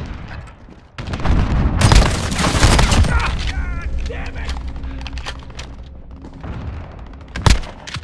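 Loud gunshots fire in quick bursts.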